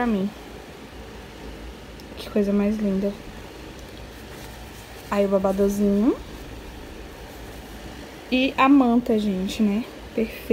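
Soft cloth rustles as hands handle it.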